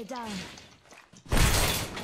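A metal door slides shut.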